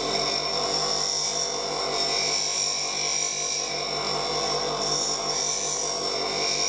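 Metal grinds and hisses against a spinning grinding wheel.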